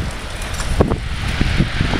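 Cars pass along a road nearby.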